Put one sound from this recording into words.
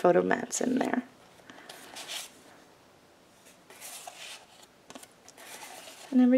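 Stiff paper cards rustle and slide as they are handled.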